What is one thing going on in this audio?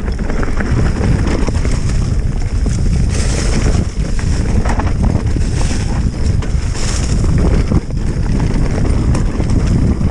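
A bicycle frame rattles and clatters over bumps.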